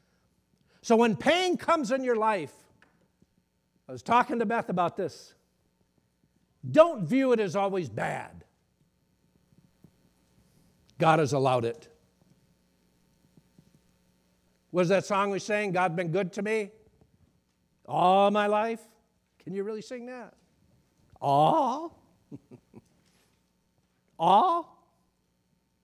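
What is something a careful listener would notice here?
A middle-aged man speaks with animation into a clip-on microphone, pausing between phrases.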